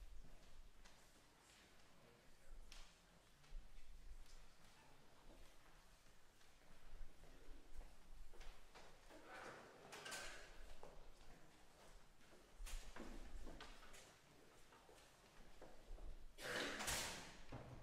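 Audience members murmur quietly in a large echoing hall.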